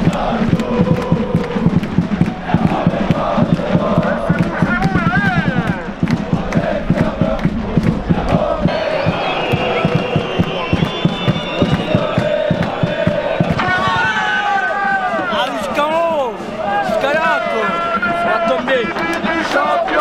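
A large crowd of fans sings and chants loudly outdoors.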